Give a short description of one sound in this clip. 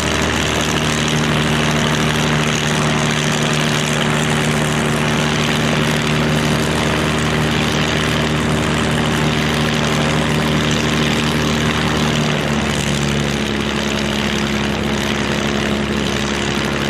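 A propeller plane's piston engine roars and drones steadily nearby.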